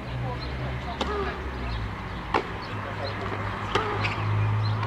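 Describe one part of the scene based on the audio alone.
Tennis rackets strike a ball outdoors with sharp pops.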